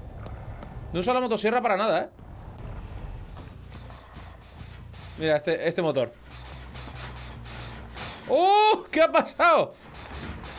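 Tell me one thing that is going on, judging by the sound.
A man talks excitedly, close to a microphone.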